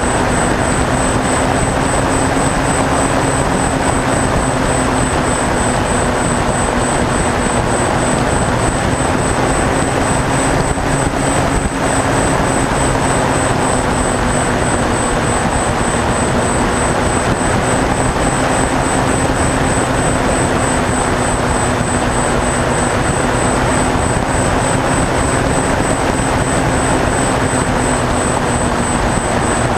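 Wind rushes past the plane.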